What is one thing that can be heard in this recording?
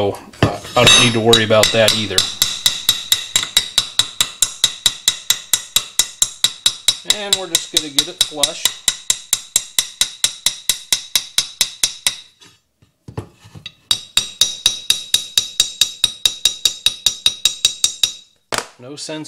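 A small hammer taps quickly and evenly on a metal punch against a cast metal carburetor part, ringing sharply.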